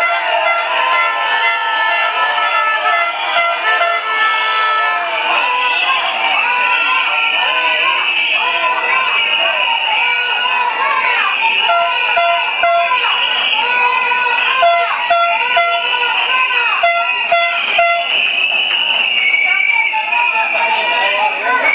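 A large crowd of men and women talks and chatters loudly outdoors.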